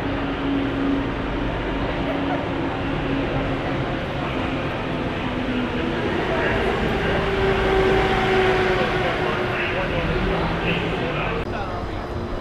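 A ride vehicle hums as it rolls slowly along a track.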